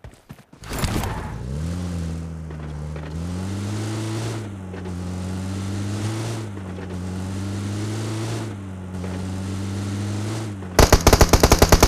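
A car engine hums steadily as a vehicle drives, rising and falling in pitch.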